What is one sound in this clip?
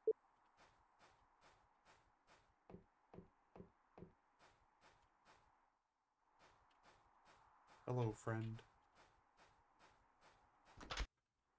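Footsteps crunch through snow in a quick, even rhythm.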